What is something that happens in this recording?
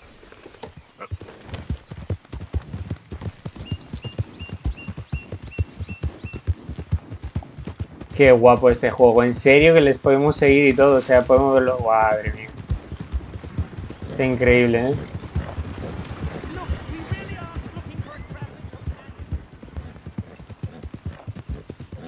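Horse hooves thud at a gallop on soft ground.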